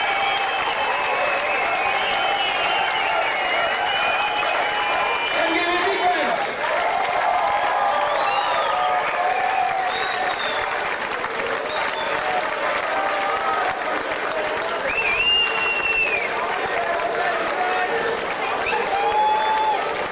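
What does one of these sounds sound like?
A big band plays a lively tune outdoors, with brass and saxophones.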